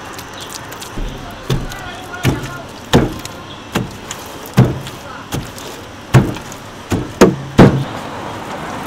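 Wet clay thuds heavily as hands slap and pack it, again and again.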